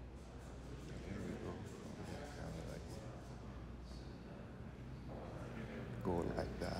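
An adult man speaks calmly nearby.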